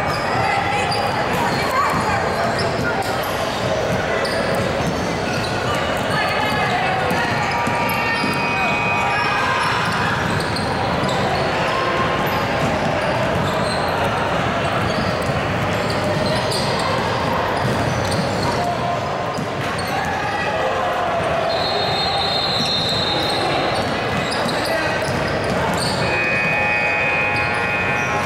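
Basketballs bounce on a hard wooden floor in a large echoing gym.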